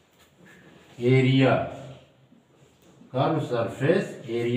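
A middle-aged man speaks calmly and clearly nearby, as if teaching.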